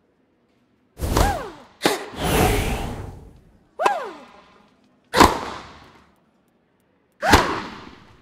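A tennis ball is struck sharply with a racket, again and again.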